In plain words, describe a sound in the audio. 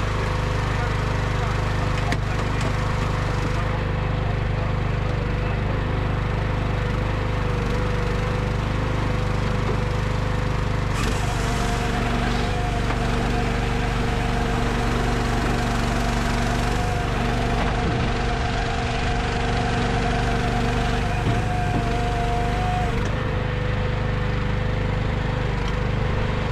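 A machine engine runs with a steady, low droning hum outdoors.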